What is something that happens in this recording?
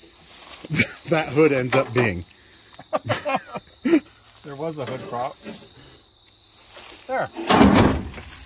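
A rusty metal hood creaks as a man lifts it.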